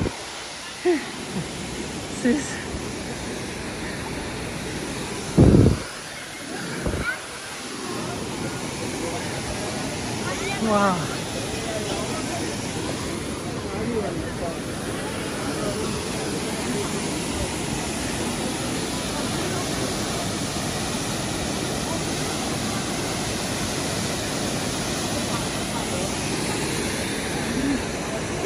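People chat in the distance.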